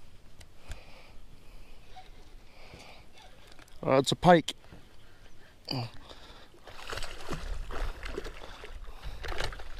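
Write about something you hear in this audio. A fishing reel clicks as its handle is cranked.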